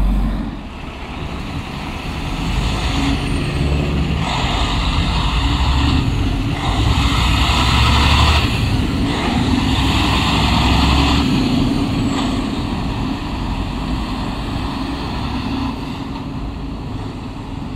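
A heavy truck engine rumbles loudly close by.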